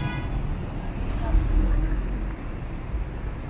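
A car passes close by.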